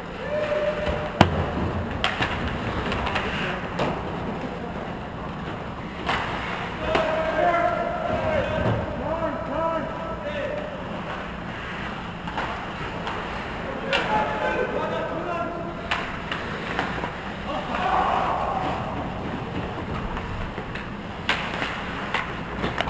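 Ice hockey skates scrape and carve across the ice in an echoing rink.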